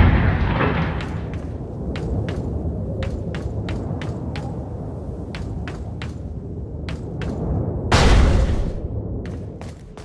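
Footsteps tap quickly on a hard walkway.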